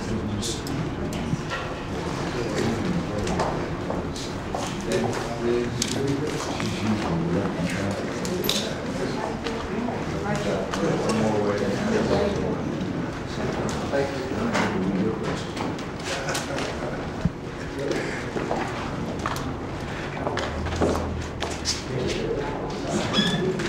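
Several men and women talk at once nearby.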